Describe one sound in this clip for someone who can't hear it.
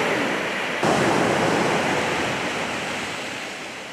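A swimmer splashes through the water.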